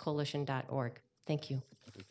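An elderly woman speaks briefly into a microphone.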